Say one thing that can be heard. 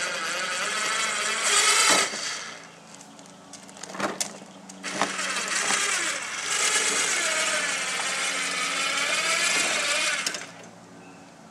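An electric lift motor whines loudly.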